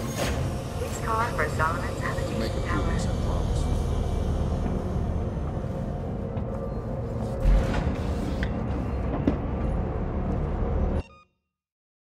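A low machine hum drones steadily, then cuts off abruptly.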